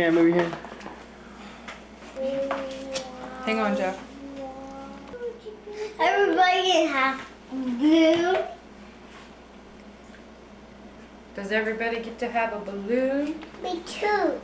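A woman talks to a baby close by in a high, singsong voice.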